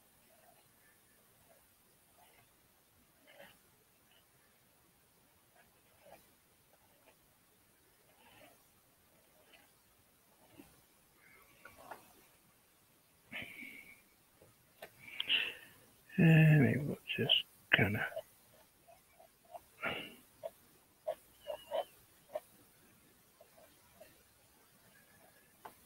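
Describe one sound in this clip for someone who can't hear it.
A hand smears paint across a canvas.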